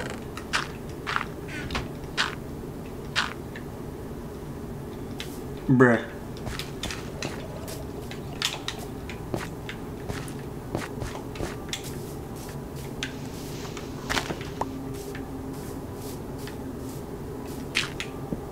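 Short crunching thuds of blocks being dug out come again and again in a video game.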